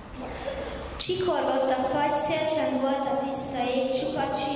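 A group of children sings together into microphones.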